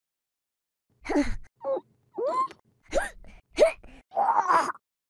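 A cartoon doll thumps softly as it tumbles to the floor.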